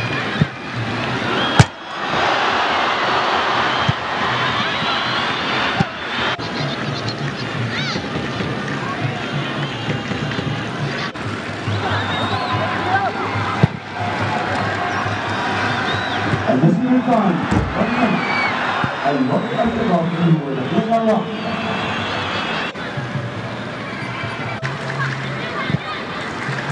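A stadium crowd roars and cheers throughout.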